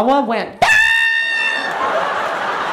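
A man shrieks in a high, dog-like scream through a microphone.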